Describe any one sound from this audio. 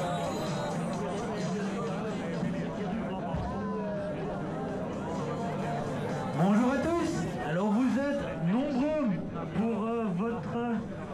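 A crowd of men and women chatters nearby, outdoors.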